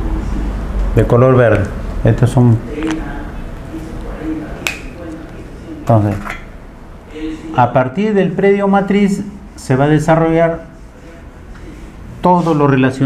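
A man speaks calmly through a microphone, explaining.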